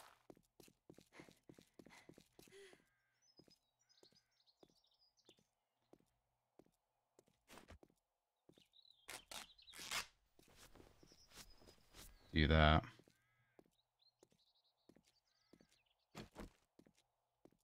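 Footsteps crunch on a gravel road.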